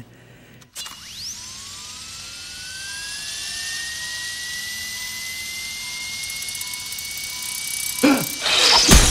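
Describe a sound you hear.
A machine whirs with a rising whine.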